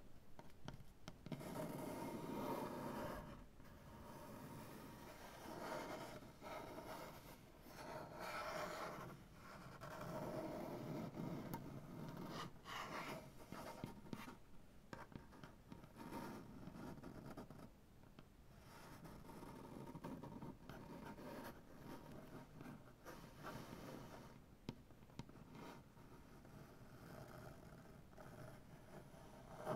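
Fingernails scratch across a wooden surface up close.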